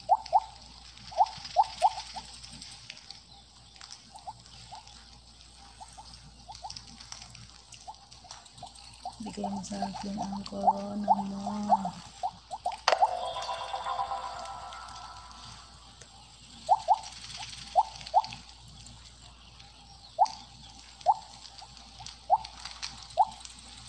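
Short bright blips chime again and again as a game snake eats.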